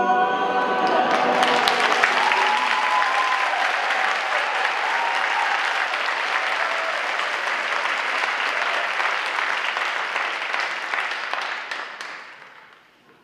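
An audience claps and cheers loudly, then the applause fades.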